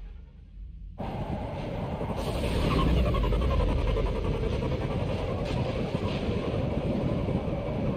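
Spaceship engines roar steadily.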